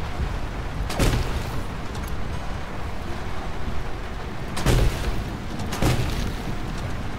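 A cannon fires with sharp thuds.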